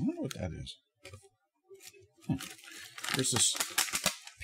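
A plastic wrapper crinkles in a man's hands.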